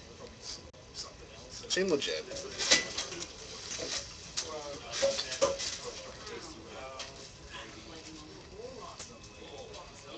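Playing cards tap and slide softly on a tabletop.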